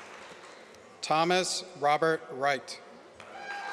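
A man reads out through a loudspeaker in a large echoing hall.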